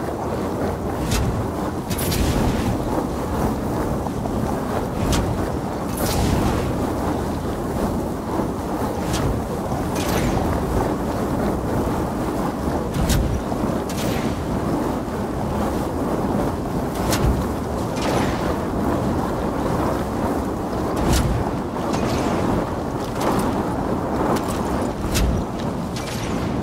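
Flamethrowers roar steadily with a rushing blast.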